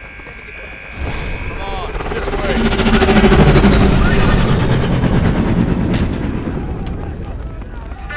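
A loud explosion rumbles and roars.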